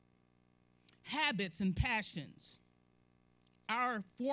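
A woman speaks with feeling through a microphone in a room with some echo.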